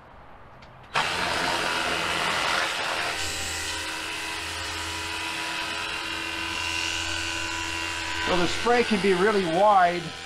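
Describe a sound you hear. A sprayer hisses as it sprays a fine mist.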